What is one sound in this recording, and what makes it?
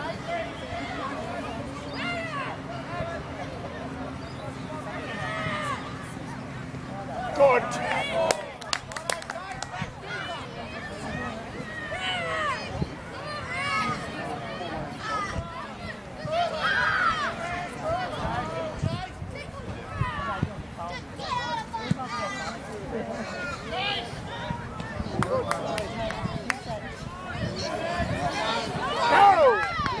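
Young boys call out to each other as they play.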